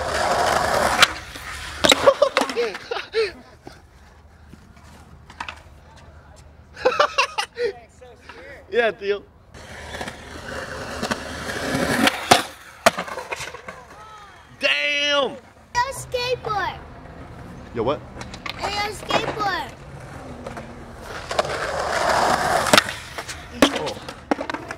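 A skateboard clacks and slaps down onto concrete.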